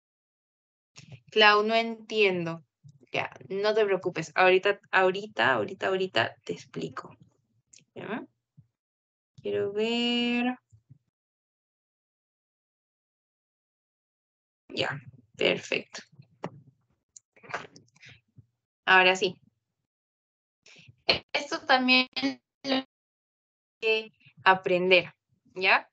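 A young woman explains calmly, heard through an online call.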